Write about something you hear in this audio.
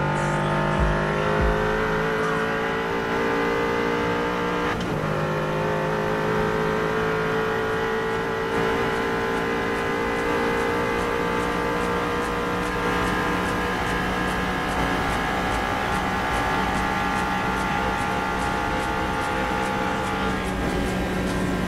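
Wind rushes hard over the car.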